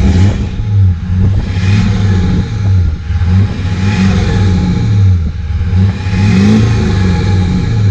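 A car engine idles loudly through its exhaust, with a deep, wavering rumble.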